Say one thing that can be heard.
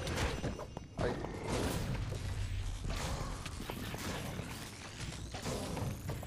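Fiery explosions burst and crackle.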